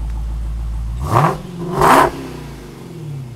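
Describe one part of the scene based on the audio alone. A car engine revs loudly in sharp bursts.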